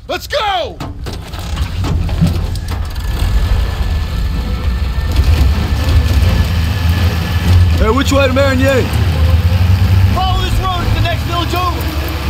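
A jeep engine rumbles steadily as the vehicle drives along.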